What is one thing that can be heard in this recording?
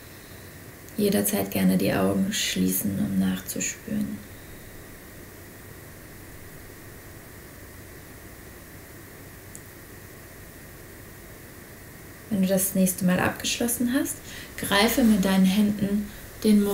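A young woman speaks calmly and close by, in short phrases with pauses.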